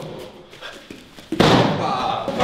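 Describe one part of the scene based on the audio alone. A kick thumps against a strike pad.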